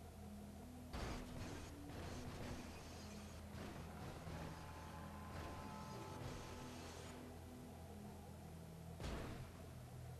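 Two cars bump and scrape together.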